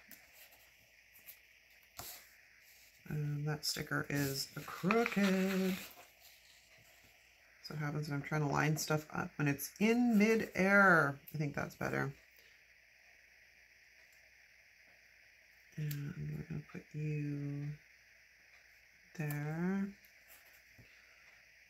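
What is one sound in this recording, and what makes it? Stickers peel and are pressed onto paper.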